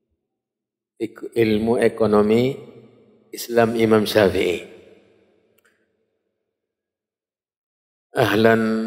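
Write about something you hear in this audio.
A man speaks with animation into a close microphone, in bursts with pauses.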